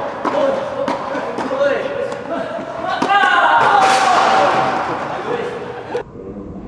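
Tennis balls are struck with sharp pops of rackets.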